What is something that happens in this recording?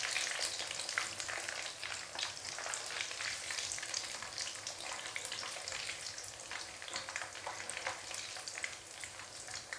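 Fried pieces clatter into a metal strainer.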